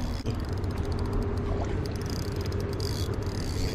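A fishing reel ticks rapidly as its handle is cranked.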